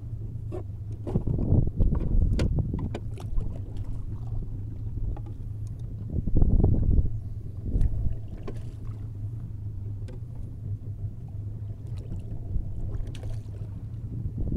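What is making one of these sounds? Items knock and rattle against a boat's side.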